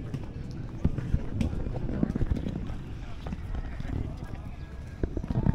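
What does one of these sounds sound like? Footsteps tap on paving.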